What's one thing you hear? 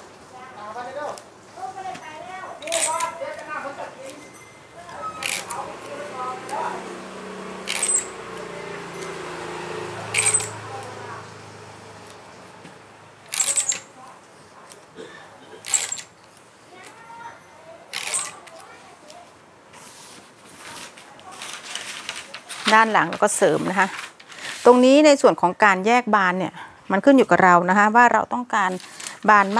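Paper rustles and slides as sheets are moved by hand.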